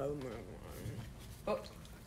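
Trading cards shuffle and slap softly together.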